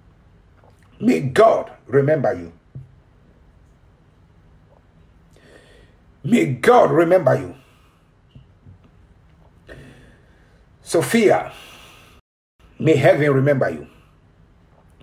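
A man speaks in short bursts close to a microphone, with animation.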